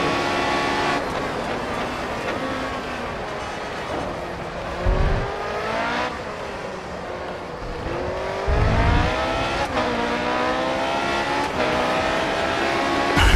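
A racing car engine whines loudly, dropping in pitch as it slows and then rising as it speeds up through the gears.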